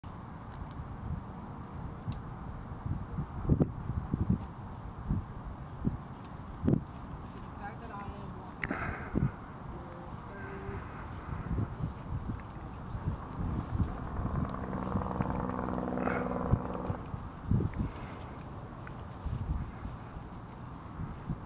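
Wind blows and buffets in gusts outdoors.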